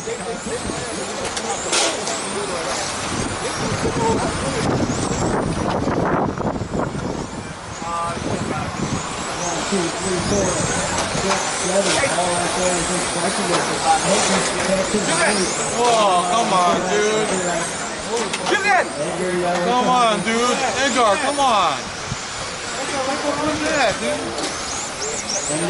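A crowd of spectators talks nearby, outdoors.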